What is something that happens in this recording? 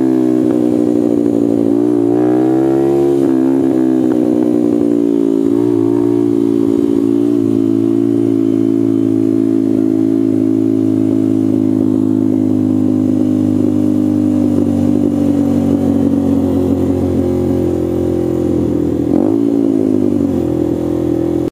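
A motorcycle engine drones loudly up close, its pitch rising and falling as it shifts and slows.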